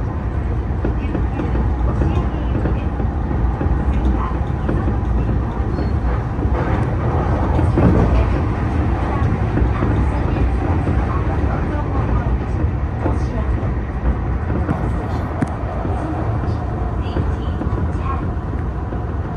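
A train rumbles and rattles steadily along the rails.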